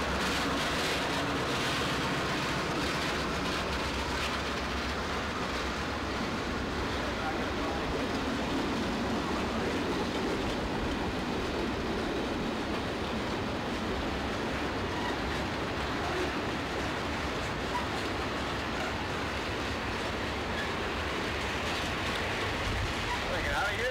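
Steel freight cars squeal and clank as they roll by.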